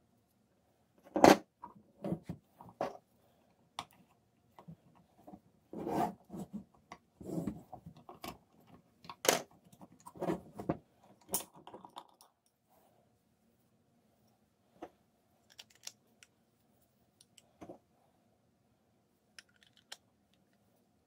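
Plastic parts click and clatter as hands handle them.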